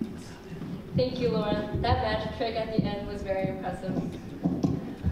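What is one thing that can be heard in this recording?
A young woman speaks through a microphone in a hall.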